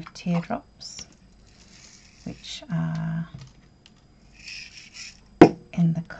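A small plastic container clicks and rattles as hands handle it.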